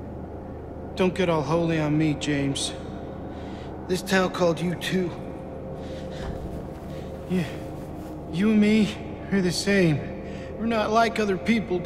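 A man speaks in a strained, emotional voice, close by.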